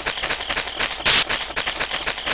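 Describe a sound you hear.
A sharp magical burst flares up.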